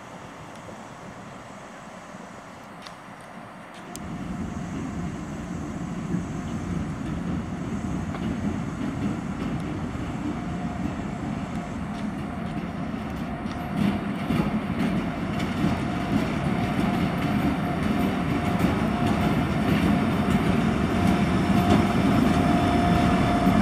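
Steel wheels roll and clatter over the rails.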